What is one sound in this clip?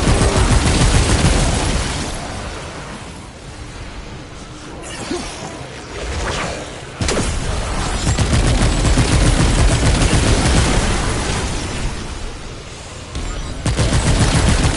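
An energy gun fires in rapid bursts with a loud crackle.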